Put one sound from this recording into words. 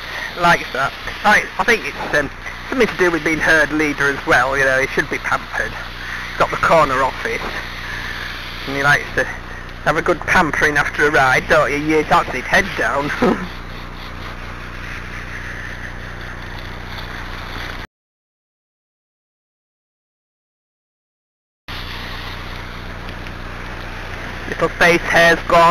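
A garden hose sprays water with a steady hiss.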